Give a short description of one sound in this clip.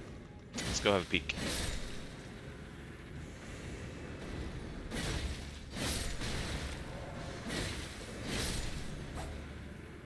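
A sword slashes and strikes with sharp bursts.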